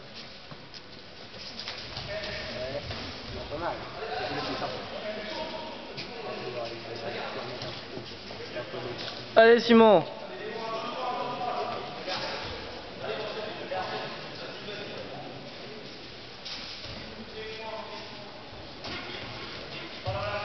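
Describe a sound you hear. Spectators talk and call out in a large echoing hall.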